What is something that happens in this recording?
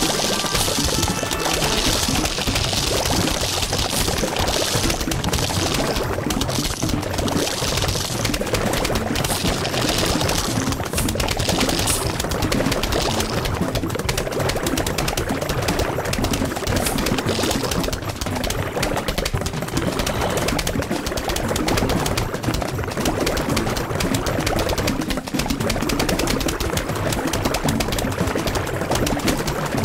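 Cartoon zombies groan and munch.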